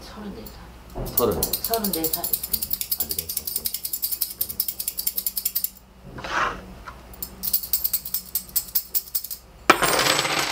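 A man shuffles and taps small objects on a table.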